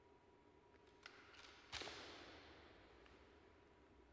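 A rifle is slapped sharply during drill, echoing through a large hall.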